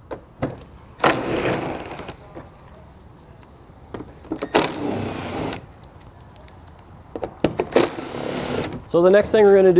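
A cordless impact driver whirs in short bursts.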